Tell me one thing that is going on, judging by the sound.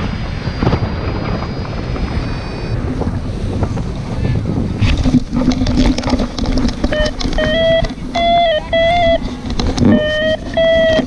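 Wind rushes loudly past in the open air.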